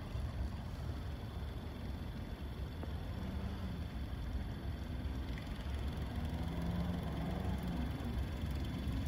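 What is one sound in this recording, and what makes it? A small electric pump hums steadily.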